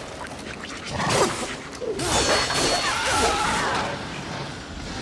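A blade slashes and strikes a creature.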